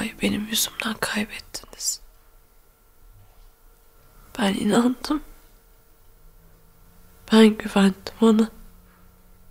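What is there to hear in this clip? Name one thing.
A young woman speaks quietly and tearfully, close by.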